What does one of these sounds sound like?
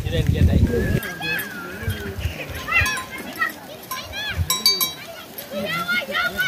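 Goats bleat nearby.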